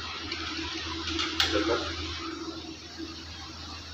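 A pot lid clanks.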